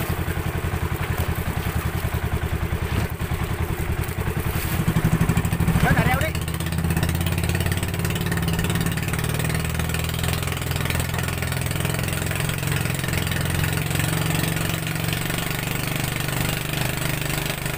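A boat engine drones steadily throughout.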